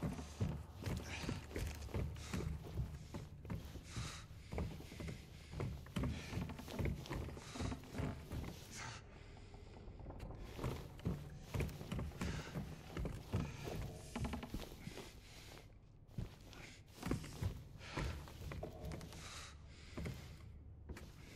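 Footsteps thud on a hard wooden floor in an echoing hall.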